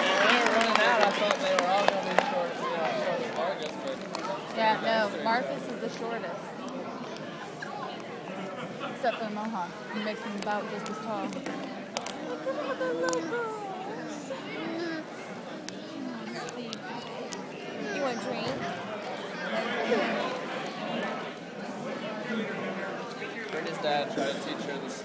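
Children chatter and call out throughout a large echoing hall.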